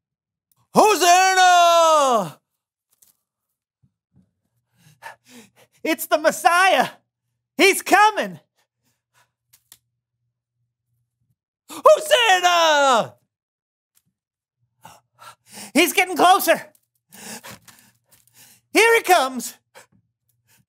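A man speaks loudly and theatrically close by, in short exclaimed bursts with gaps of silence.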